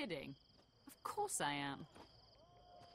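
A young woman answers with animation.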